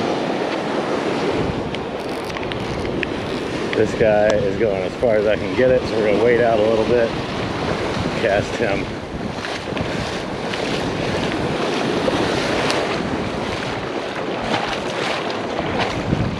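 Waves wash up and break on the shore.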